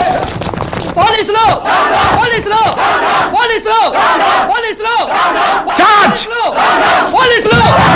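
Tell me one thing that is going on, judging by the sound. A large crowd shouts and chants in rhythm.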